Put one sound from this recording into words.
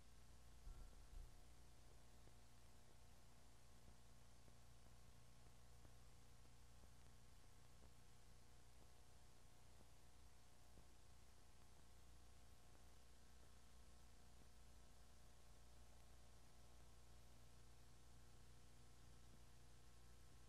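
Equipment hums steadily in a small enclosed cabin.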